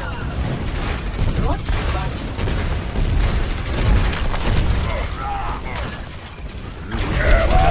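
Gunfire rattles rapidly in a video game.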